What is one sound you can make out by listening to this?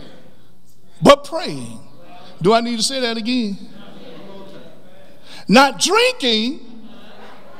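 A man preaches with emphasis through a microphone, pausing between phrases.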